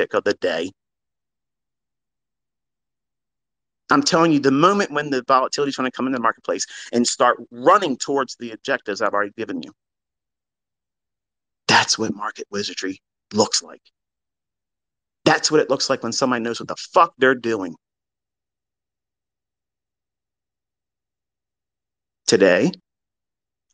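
A man speaks close to a microphone, in short bursts with pauses.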